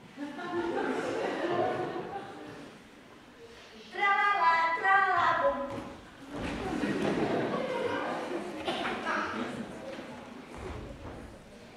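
Children speak lines loudly in a large hall.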